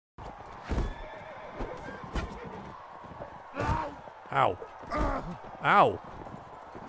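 Horses' hooves thud on snow.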